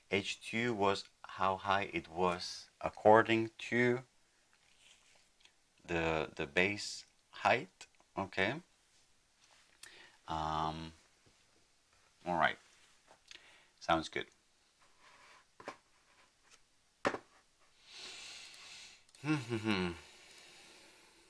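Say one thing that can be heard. A man speaks calmly and thoughtfully, close to a microphone, with pauses.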